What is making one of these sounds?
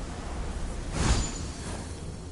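A heavy thud sounds as a winged figure lands on a stone platform.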